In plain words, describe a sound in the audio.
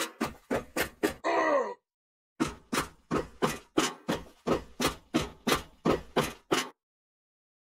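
Footsteps thud steadily on stone stairs.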